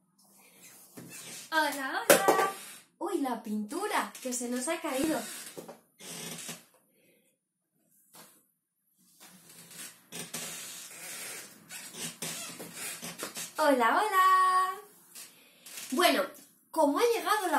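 A young woman speaks and sings brightly and with animation, close by.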